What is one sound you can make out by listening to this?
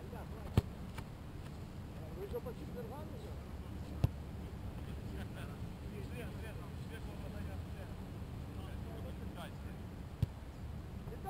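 A football thumps as it is kicked.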